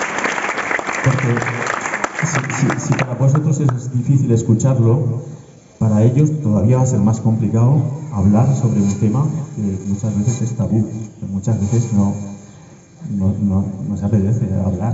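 A man reads out steadily through a loudspeaker, outdoors.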